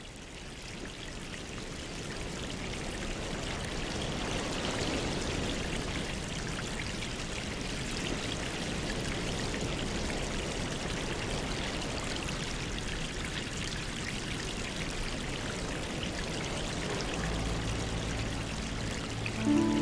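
Air bubbles fizz and gurgle steadily through water.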